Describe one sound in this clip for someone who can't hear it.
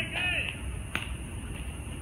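A bat cracks against a ball in the distance.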